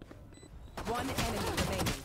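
A pistol fires rapid shots.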